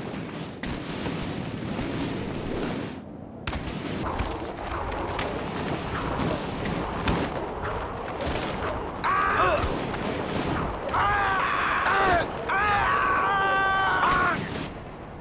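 A body thumps and scrapes as it tumbles down a steep ramp.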